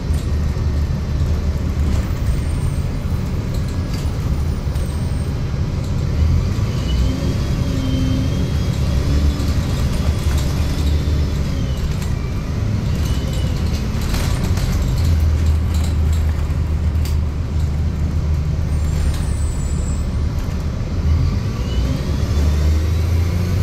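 A bus's body rattles and creaks as it rolls along.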